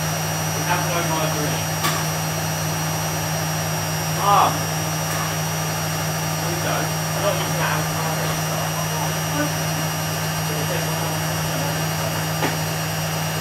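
A washing machine hums steadily as its drum turns.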